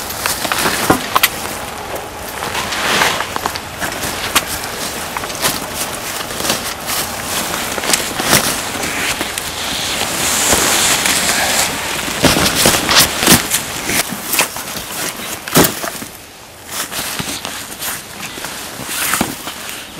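Stiff fabric rustles and crinkles as it is pushed and handled close by.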